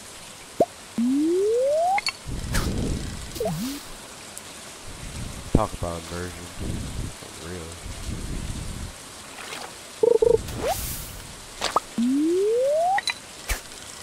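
A rising electronic tone plays as a fishing cast charges up.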